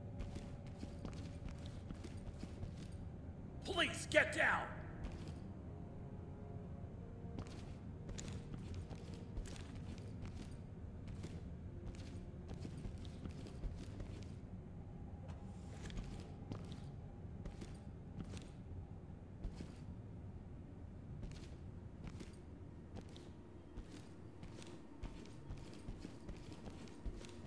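Footsteps tread steadily across a hard floor indoors.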